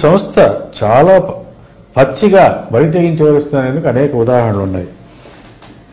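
A man speaks calmly into a microphone, reading out.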